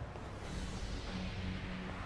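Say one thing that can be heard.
Footsteps walk slowly on pavement.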